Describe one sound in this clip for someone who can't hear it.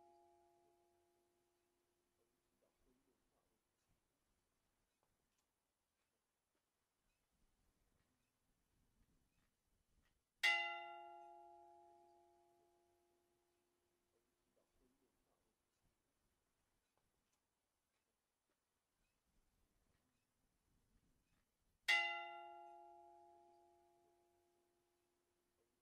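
A church bell tolls slowly, each stroke ringing out and fading.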